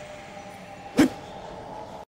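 A sword slashes with a sharp whoosh.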